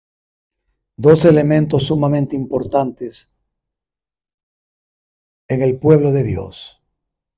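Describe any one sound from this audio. A man speaks calmly into a microphone, amplified and close.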